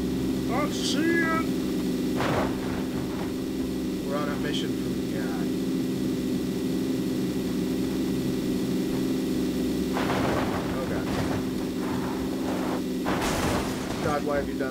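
A car's suspension thumps and bangs over rough ground.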